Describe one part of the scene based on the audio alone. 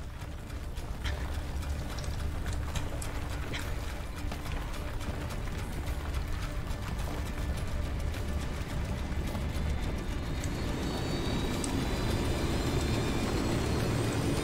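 A helicopter's rotor thumps and whirs steadily nearby.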